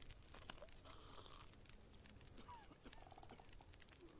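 Someone gulps water from a jug.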